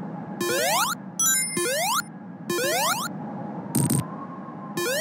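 A springy video game jump sound rises sharply in pitch, again and again.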